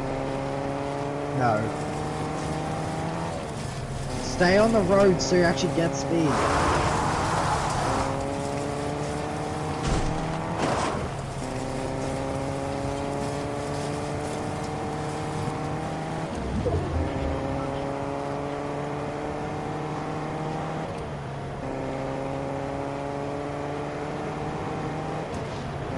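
A car engine revs up through its gears again and again, rising in pitch and dropping at each shift.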